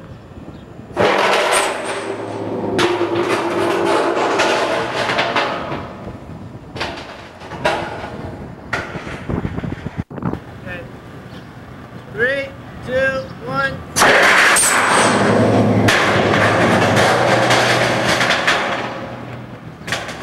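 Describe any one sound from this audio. A launched tank rushes through the air with a loud roaring whoosh, outdoors.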